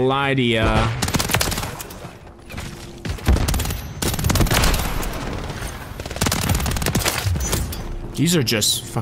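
Rapid gunshots and explosions crack and boom.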